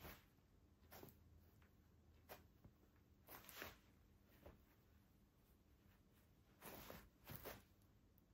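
Football boots step and shuffle softly on artificial turf.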